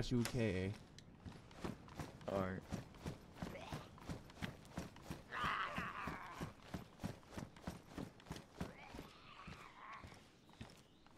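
Footsteps tread quickly and steadily over hard ground.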